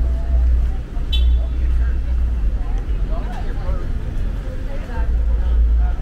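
Adults chat faintly nearby outdoors.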